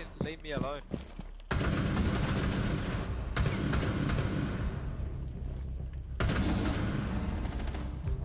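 Rapid gunshots crack loudly.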